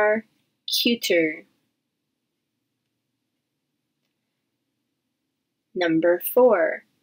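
A woman speaks brightly and clearly into a nearby microphone, pausing in between.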